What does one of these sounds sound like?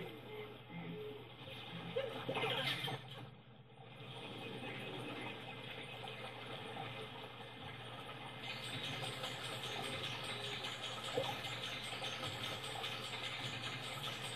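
Video game music plays through a television loudspeaker.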